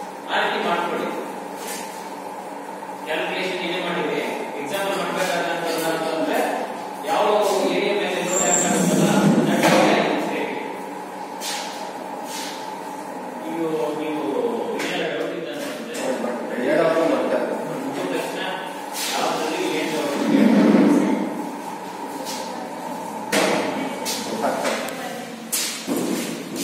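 A hydraulic testing machine hums steadily as it presses down.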